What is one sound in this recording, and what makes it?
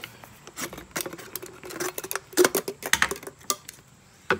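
A plastic bottle crinkles and clicks in hand.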